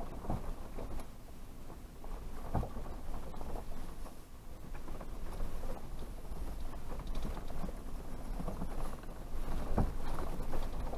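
A vehicle's body rattles and thumps over bumps.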